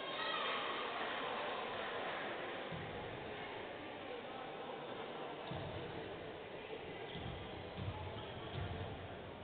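Sneakers squeak on a hard court in a large echoing hall.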